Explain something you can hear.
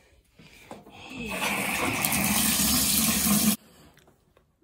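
Water gushes from a bathtub tap.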